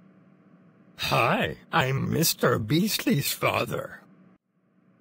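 A man speaks cheerfully through a microphone.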